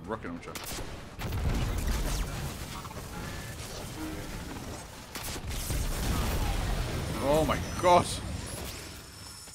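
Explosions boom loudly.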